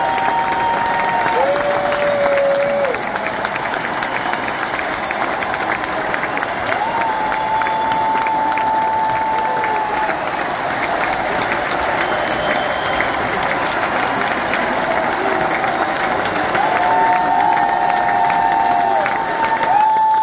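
A large crowd cheers in a big echoing arena.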